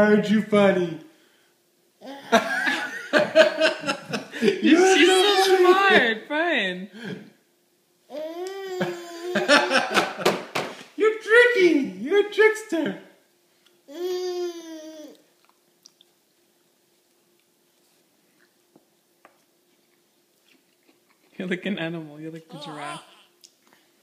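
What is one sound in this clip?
A man talks playfully to a baby up close.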